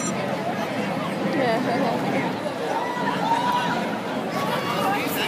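A crowd of people chatters and calls out along a street outdoors.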